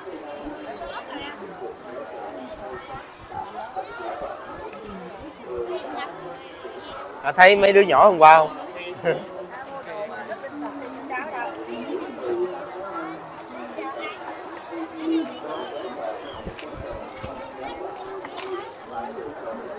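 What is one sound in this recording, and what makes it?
A large outdoor crowd chatters all around.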